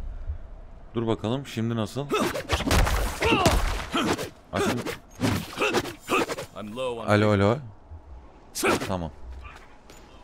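A young man talks into a microphone with animation, close by.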